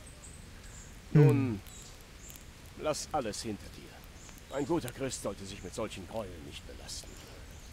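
An older man speaks gravely, close by.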